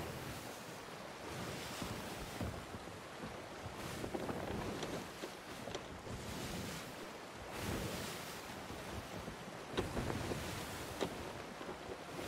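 Stormy sea waves crash and roar steadily.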